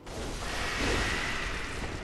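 A blade slashes and strikes a foe.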